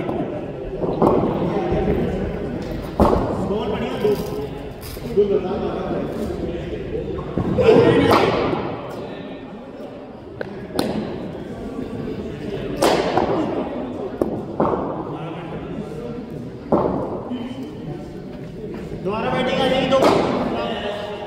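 A cricket ball cracks sharply off a bat, over and over, in an echoing indoor space.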